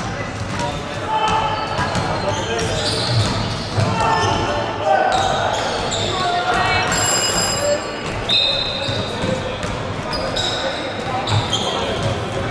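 Sneakers squeak sharply on a hardwood floor in a large echoing hall.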